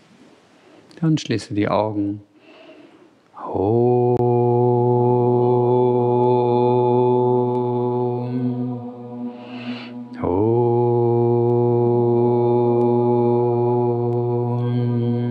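A man chants long, steady held notes in a reverberant hall.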